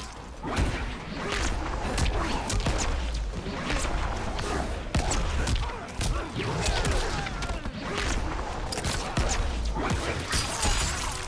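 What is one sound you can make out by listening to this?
Punches and kicks land with sharp, heavy thuds in quick succession.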